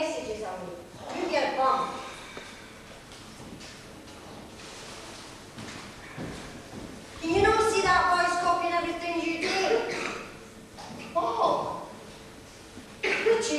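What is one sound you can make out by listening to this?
A woman speaks in a hall with some echo.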